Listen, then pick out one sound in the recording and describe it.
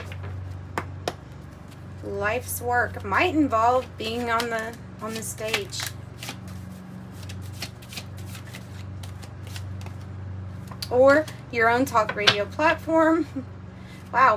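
Playing cards riffle and shuffle in someone's hands.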